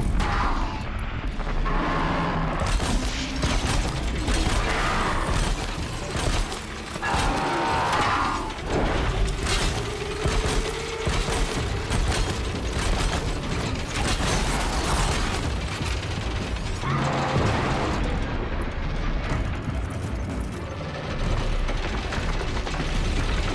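A large mechanical beast growls and roars with metallic rumbling.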